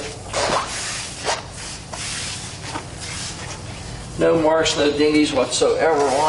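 A hand rubs and pats the metal of a car body.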